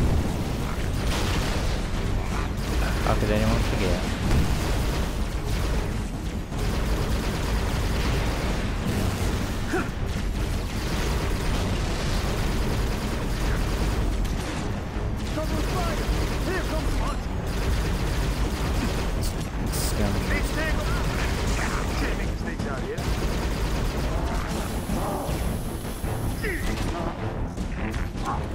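Plasma guns fire in rapid bursts, crackling and zapping.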